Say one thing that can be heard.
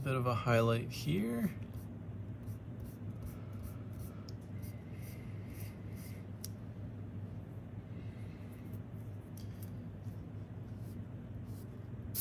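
A fingertip rubs softly across paper.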